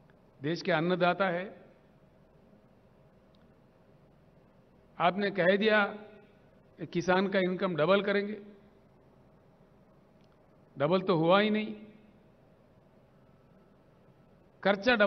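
An older man speaks slowly and firmly into a microphone, in short phrases with long pauses, heard through loudspeakers.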